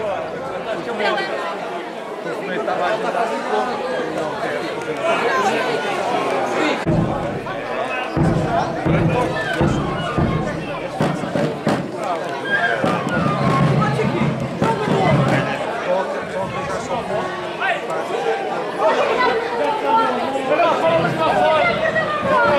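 A crowd chatters loudly outdoors.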